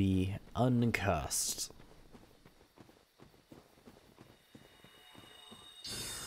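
Armoured footsteps tread on soft ground.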